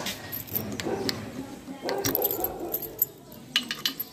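A key clicks and turns in a metal lock.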